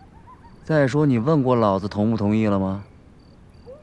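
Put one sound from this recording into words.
A young man speaks with agitation, close by.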